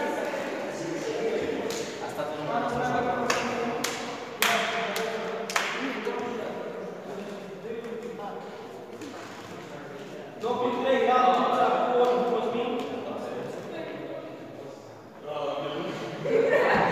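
A middle-aged man speaks out loudly in a large echoing hall.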